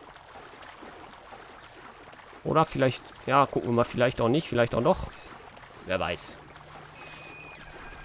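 Water splashes softly as a swimmer paddles along.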